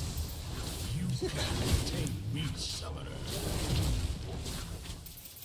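Blows land with dull thuds.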